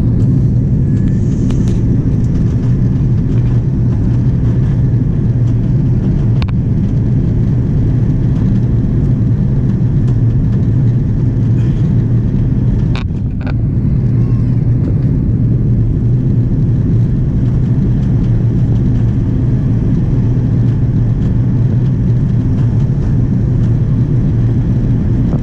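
Jet engines roar with a steady, deep drone.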